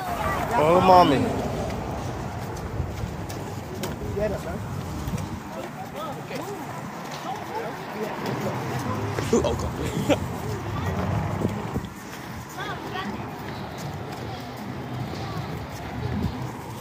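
Footsteps shuffle on pavement as a group walks outdoors.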